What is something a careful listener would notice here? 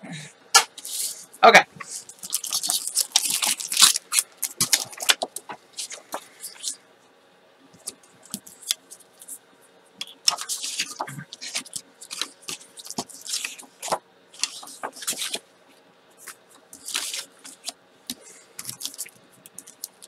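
Sheets of paper rustle and slide as they are handled.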